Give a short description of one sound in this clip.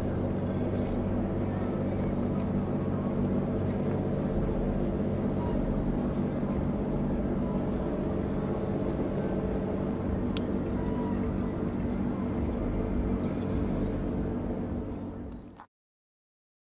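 A large ship's engines rumble low and steady.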